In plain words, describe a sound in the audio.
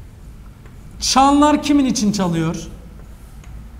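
A man speaks calmly.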